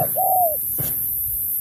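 A dove calls briefly nearby.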